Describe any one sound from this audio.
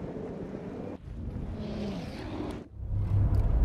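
Wind and rain rush through a storm.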